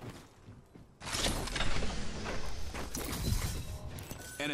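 A metal crate opens with a loud mechanical whoosh.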